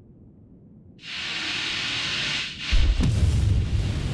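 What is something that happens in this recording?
A thruster hisses in short, loud bursts.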